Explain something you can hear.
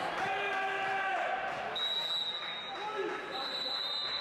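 Players shout to each other in a large echoing gym.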